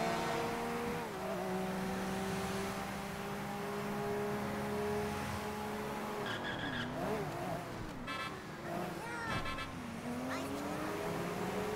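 A car engine hums steadily and revs up and down.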